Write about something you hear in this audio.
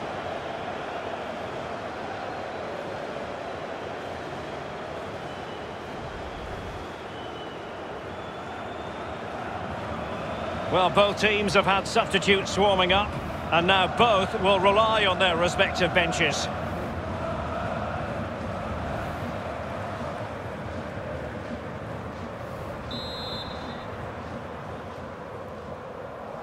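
A stadium crowd murmurs steadily in the distance.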